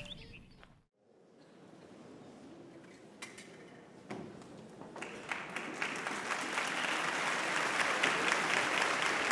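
An orchestra tunes its instruments in a large hall.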